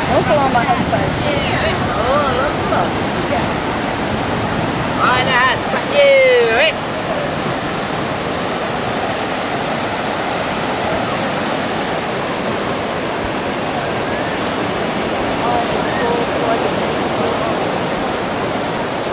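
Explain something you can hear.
Waves wash steadily onto a beach outdoors.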